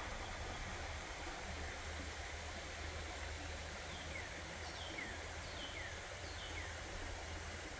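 Shallow water ripples and gurgles steadily over stones in a stream.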